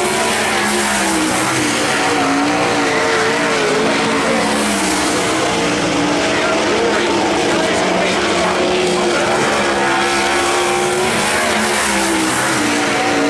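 Racing car engines roar and rev loudly nearby.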